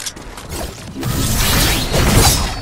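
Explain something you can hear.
A sword whooshes and crackles with energy.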